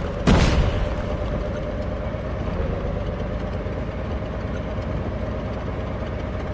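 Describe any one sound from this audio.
A tank engine rumbles and clatters steadily.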